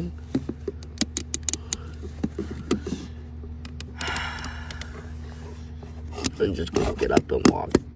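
Plastic clicks and rattles as a toy figure's joints are moved by hand.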